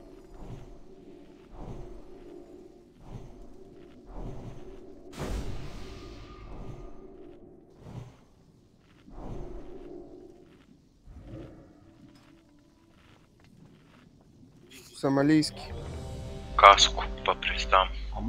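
Magic spells whoosh and crackle in a fantasy game battle.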